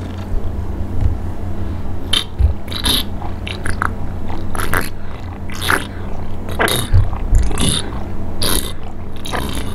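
A woman gulps a drink loudly, close to a microphone.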